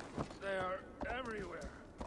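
A horse's hooves crunch through snow.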